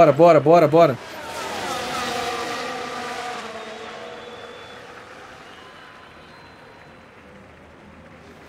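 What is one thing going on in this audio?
Racing car engines roar past and fade.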